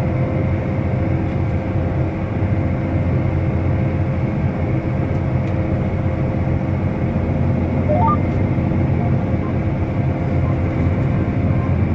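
A tractor engine hums steadily, heard from inside the cab.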